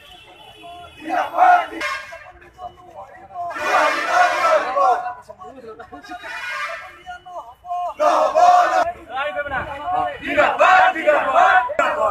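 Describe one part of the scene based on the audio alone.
A crowd of men chants slogans loudly in unison outdoors.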